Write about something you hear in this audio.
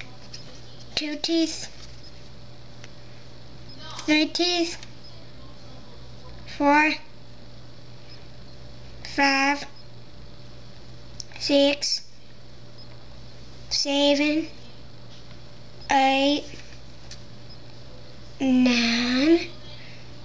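A young boy speaks close by in short phrases, with pauses between them.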